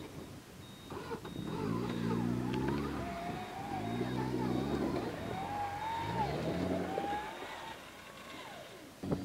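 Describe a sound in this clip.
An off-road vehicle's engine revs hard in loud rising bursts.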